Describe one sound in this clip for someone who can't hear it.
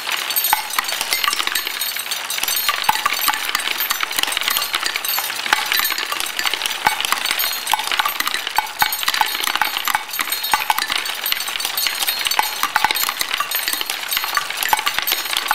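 Marbles click sharply as they drop onto wood.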